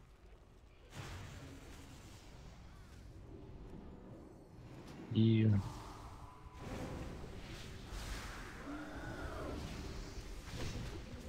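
Battle sounds of spells and blows clash faintly in a fantasy game.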